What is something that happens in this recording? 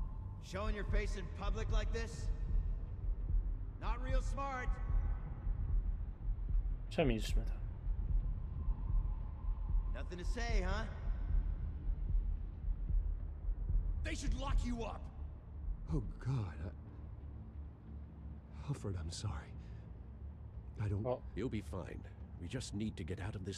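A young man speaks casually into a headset microphone.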